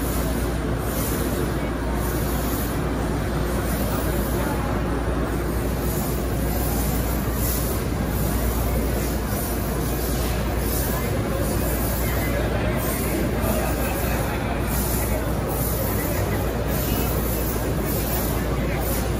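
A crowd murmurs and chatters in the background of a large, echoing hall.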